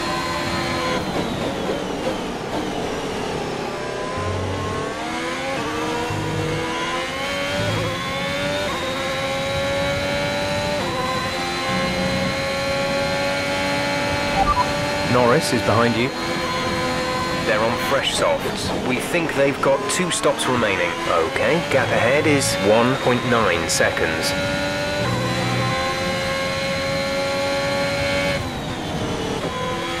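A racing car engine whines, rising in pitch through the gears and dropping when braking.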